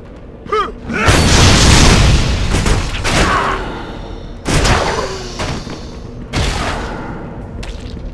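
Fiery blasts roar and crackle.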